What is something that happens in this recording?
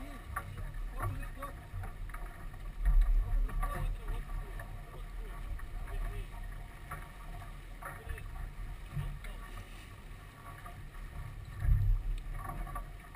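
Water splashes against a sailboat's hull.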